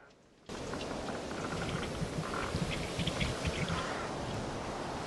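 Waves slosh and splash against a boat's hull.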